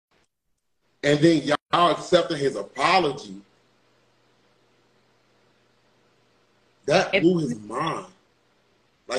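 A young man talks with animation over an online call.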